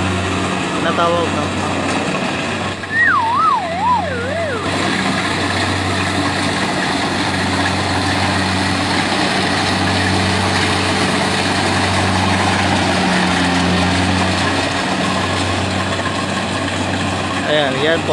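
A harvester engine drones steadily close by.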